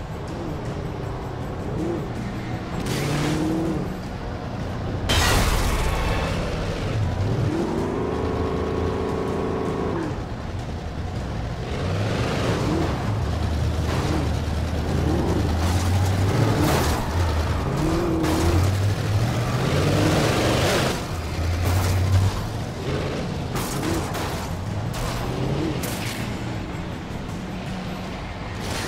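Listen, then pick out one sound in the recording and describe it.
A car engine roars and revs as it speeds along.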